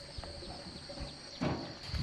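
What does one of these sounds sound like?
A hoe scrapes and thuds into dry dirt.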